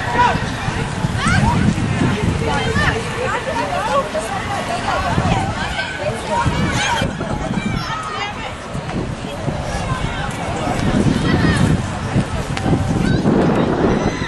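Young women shout and call out to each other outdoors.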